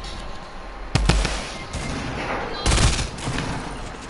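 Guns fire in short, sharp bursts.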